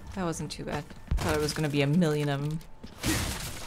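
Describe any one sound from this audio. A young woman talks animatedly into a microphone, close by.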